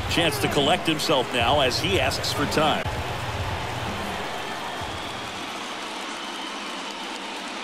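A large stadium crowd murmurs steadily in the distance.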